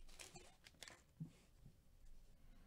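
Cards slide and shuffle against each other.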